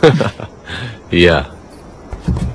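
A young woman laughs playfully close by.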